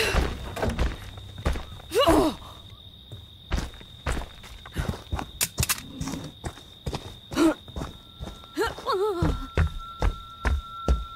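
Heavy footsteps thud steadily.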